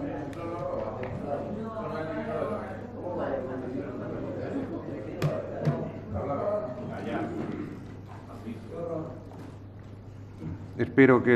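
A man speaks through a microphone from a distance in an echoing hall.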